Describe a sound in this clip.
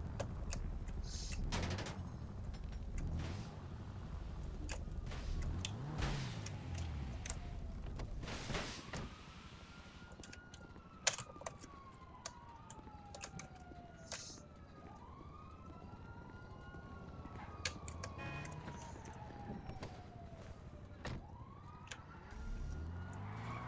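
Fire crackles and pops.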